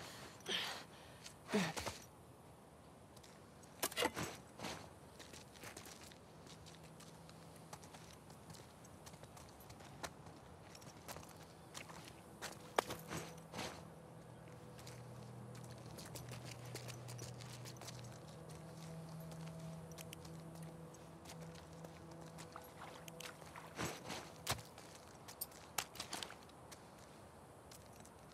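Footsteps splash softly through shallow water and wet ground.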